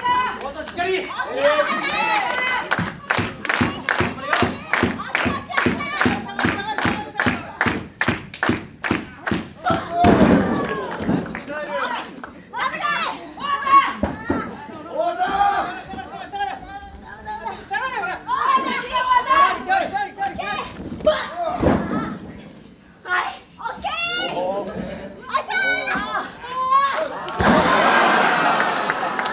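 Young women shout and yell with effort.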